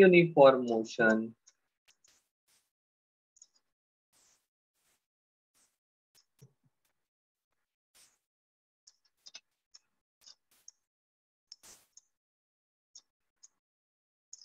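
A stylus taps and scratches lightly on a tablet.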